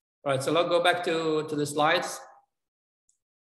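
An elderly man speaks calmly through a microphone on an online call.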